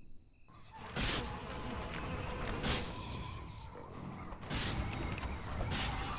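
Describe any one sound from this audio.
Game sound effects whoosh and crackle as characters fight.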